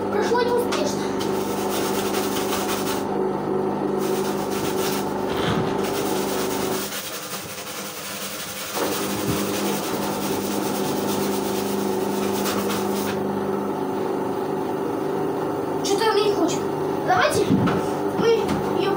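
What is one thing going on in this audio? A sponge scrubs the side of a bathtub with a rubbing sound.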